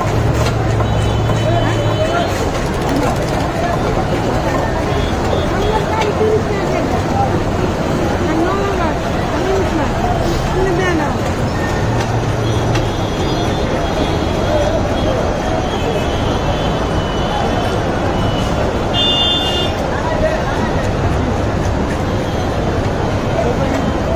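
A knife scrapes scales off a fish with quick, rasping strokes.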